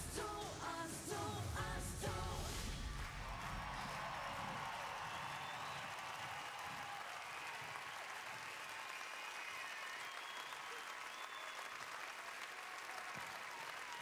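A large crowd cheers and applauds loudly.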